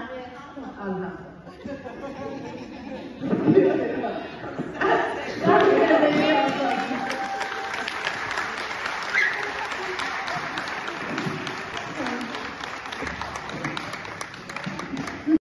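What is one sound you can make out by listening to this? A man and a woman speak loudly in a large echoing room.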